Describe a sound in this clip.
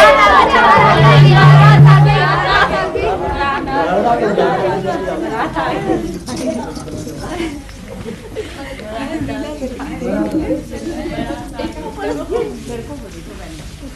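A crowd of women and girls chatter and call out excitedly.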